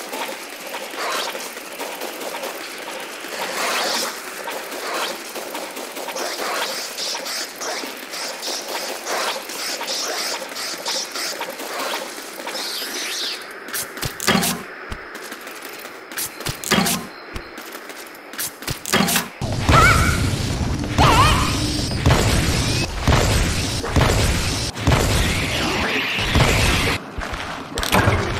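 A sword slashes and strikes creatures repeatedly.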